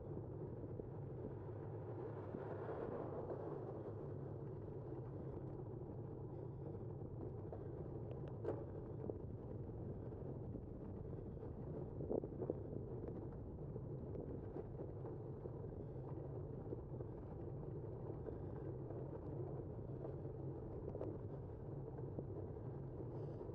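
Wind rushes steadily past while moving along outdoors.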